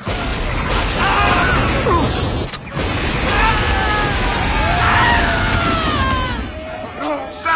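Men shout and yell in panic.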